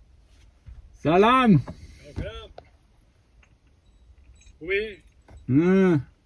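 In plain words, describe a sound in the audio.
A donkey brays loudly nearby.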